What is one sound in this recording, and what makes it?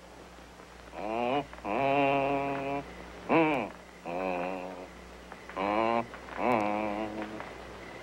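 A harmonica plays a slow tune outdoors.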